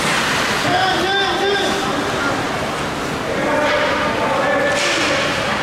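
Children shout and call out across a large echoing rink.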